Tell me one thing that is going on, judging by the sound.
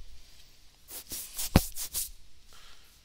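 A game piece clicks down onto a board.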